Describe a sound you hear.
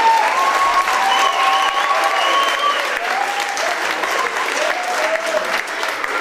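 A crowd cheers and whistles loudly.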